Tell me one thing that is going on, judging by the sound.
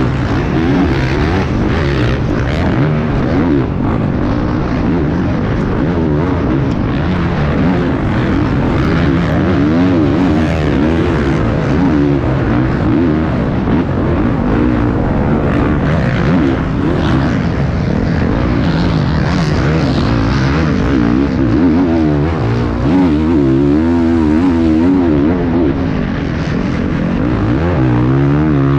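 A motorcycle engine roars close by, revving up and down constantly.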